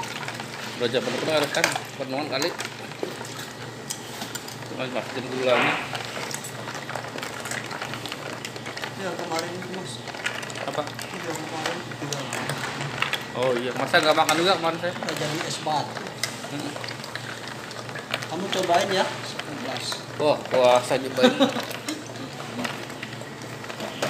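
A utensil stirs and sloshes liquid in a plastic container.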